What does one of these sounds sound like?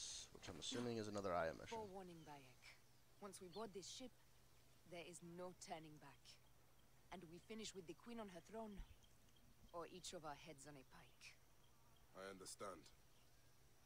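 A woman speaks calmly and firmly, close by.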